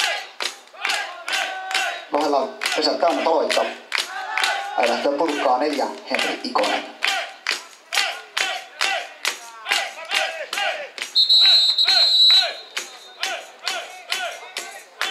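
A group of young women chant and cheer together outdoors.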